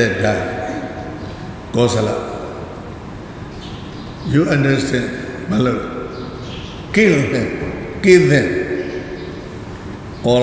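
A group of men chant together in a large echoing hall.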